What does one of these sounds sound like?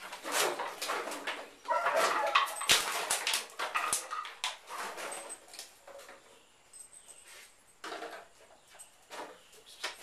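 Plastic bottles crunch and clatter as a man kicks and steps through them.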